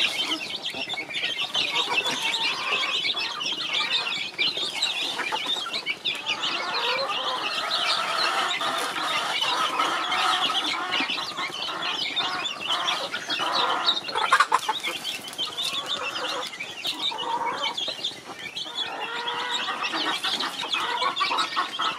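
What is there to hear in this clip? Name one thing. Many chicks cheep loudly and constantly close by.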